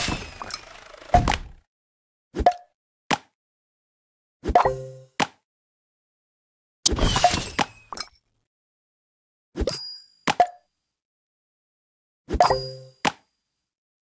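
Game pieces pop and chime in short bursts.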